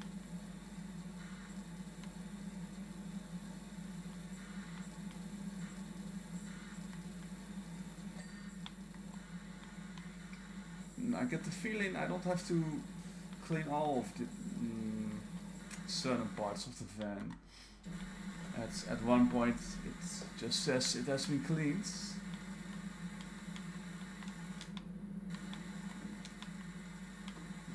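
A pressure washer sprays with a steady hiss and hum.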